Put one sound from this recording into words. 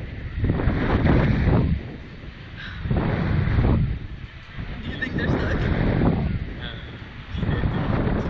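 A young man talks with excitement.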